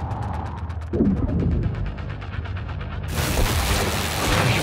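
A beam weapon fires with a steady buzzing hum.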